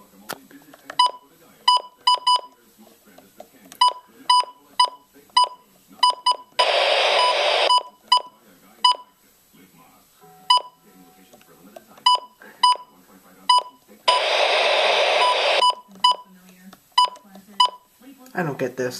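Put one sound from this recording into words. A radio beeps with short high tones as its buttons are pressed.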